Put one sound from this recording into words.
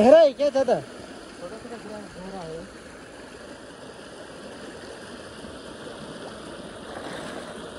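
Water splashes as a person wades through a stream.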